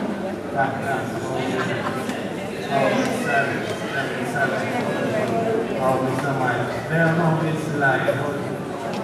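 A man speaks calmly through a microphone and loudspeakers in an echoing hall.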